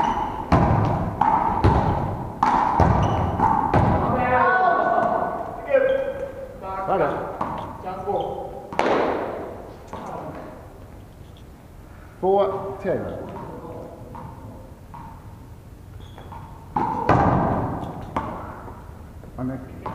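A ball thuds and bounces on a hard floor, echoing in a large hall.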